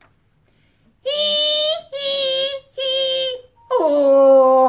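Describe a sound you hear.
A middle-aged woman loudly sings out high drawn-out calls.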